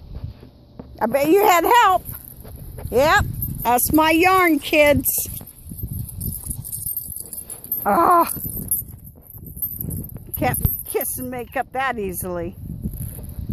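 Puppies whine and yelp close by.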